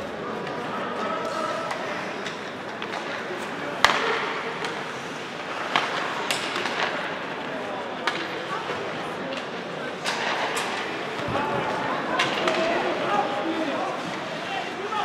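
A crowd of spectators murmurs and chatters.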